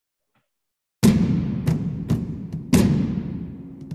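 Bombs explode with deep booms.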